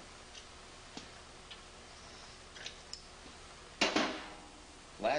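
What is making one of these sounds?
Metal parts clink and clatter as they are handled.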